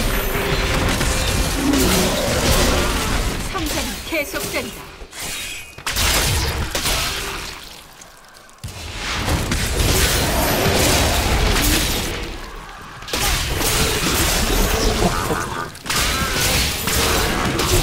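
Monsters screech and growl as they attack.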